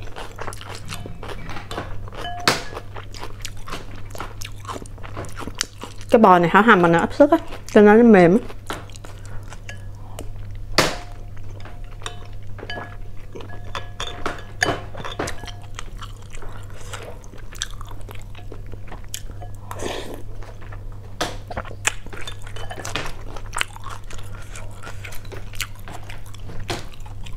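Chopsticks tap against a bowl.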